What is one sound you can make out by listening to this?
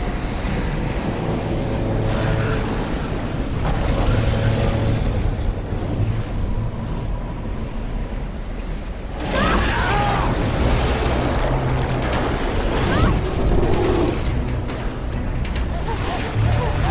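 A strong wind roars and howls steadily.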